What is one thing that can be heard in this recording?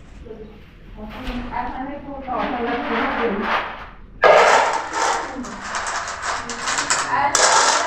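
Metal pots clank together on a floor.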